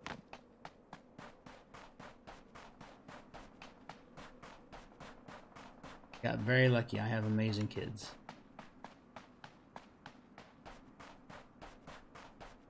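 Footsteps crunch quickly and steadily through snow.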